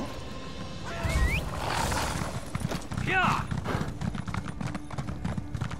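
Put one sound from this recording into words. A horse's hooves pound rapidly on sand as the horse gallops.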